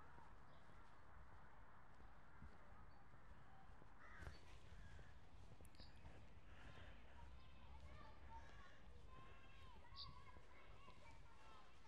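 Leaves rustle gently in a light breeze outdoors.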